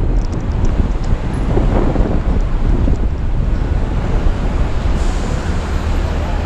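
City traffic hums and rolls by nearby.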